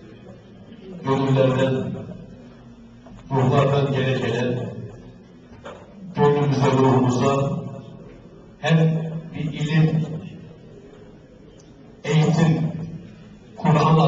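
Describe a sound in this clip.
A man chants melodiously into a microphone in phrases separated by pauses.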